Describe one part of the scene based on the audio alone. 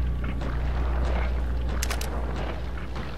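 A metal tool snaps and clicks against a pipe.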